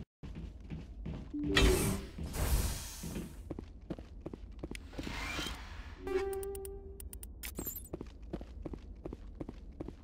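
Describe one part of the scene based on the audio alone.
Boots thud on a metal floor with steady footsteps.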